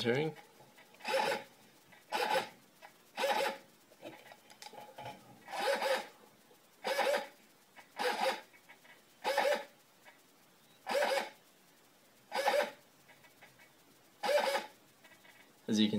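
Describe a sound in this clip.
A small servo motor whirs in short, repeated bursts.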